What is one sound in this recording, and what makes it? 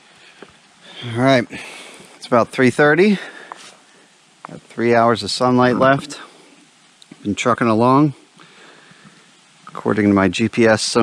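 A man speaks calmly and close by, pausing between phrases.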